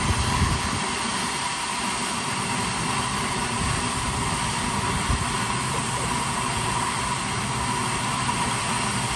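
A tall jet of water gushes and hisses steadily into the air.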